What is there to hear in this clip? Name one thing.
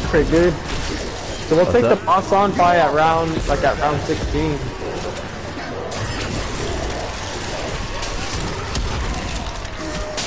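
Electric bolts crackle and zap in a game.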